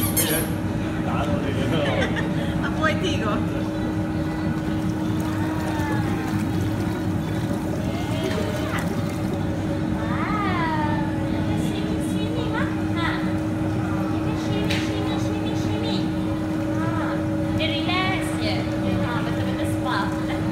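Water bubbles and churns steadily.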